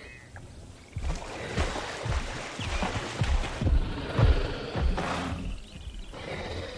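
A large animal growls and bellows close by.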